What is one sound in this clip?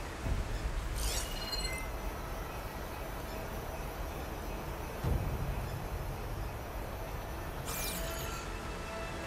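A high shimmering electronic sweep sounds twice.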